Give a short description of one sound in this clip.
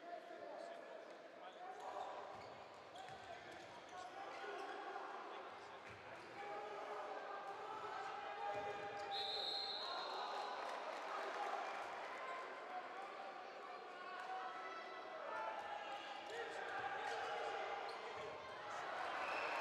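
A handball bounces on a hard court floor.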